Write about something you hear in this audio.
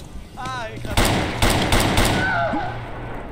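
A gun fires several loud shots in quick succession.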